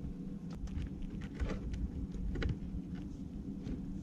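A cable plug clicks into a socket.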